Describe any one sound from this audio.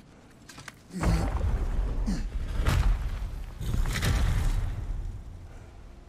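Stone scrapes as a warrior squeezes through a narrow gap.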